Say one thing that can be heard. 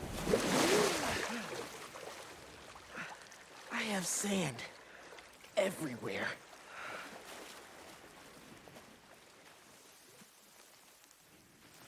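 Water splashes and laps around swimmers.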